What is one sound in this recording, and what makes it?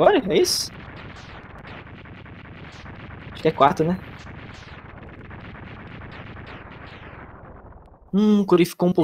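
Retro video game laser blasts and explosion effects crackle.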